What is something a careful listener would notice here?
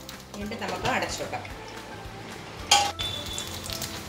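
A glass lid clinks onto a pan.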